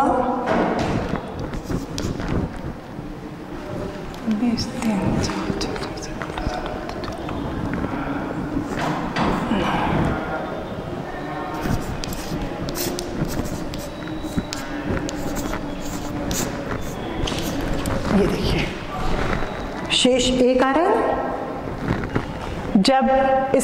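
A woman speaks calmly and clearly, as if explaining to a class.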